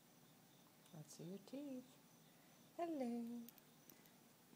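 A cat meows close by, with short rising cries.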